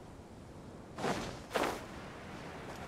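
Wings snap open with a sharp whoosh.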